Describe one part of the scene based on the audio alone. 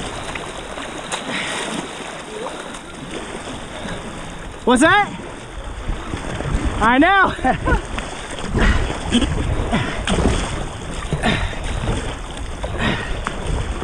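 A paddle splashes in the water in repeated strokes.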